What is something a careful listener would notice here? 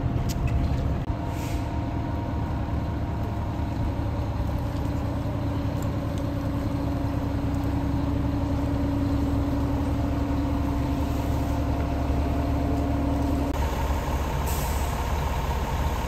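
A fire engine's engine rumbles steadily nearby.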